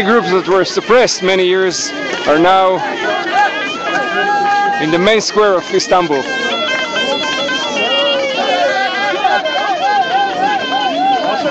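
A crowd of men and women chant and shout together outdoors.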